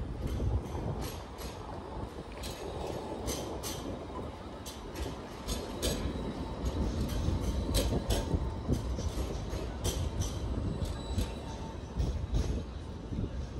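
A tram rumbles past close by.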